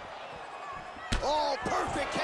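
A kick lands with a sharp smack.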